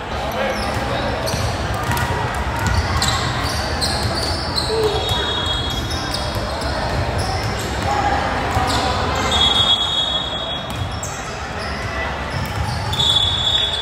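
Basketball shoes squeak on a hardwood court in a large echoing gym.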